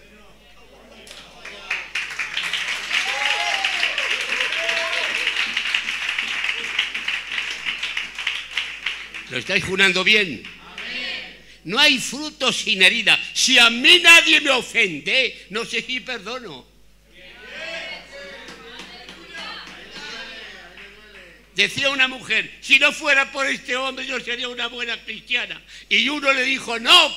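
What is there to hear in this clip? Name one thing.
An elderly man speaks with animation into a microphone, heard through a loudspeaker.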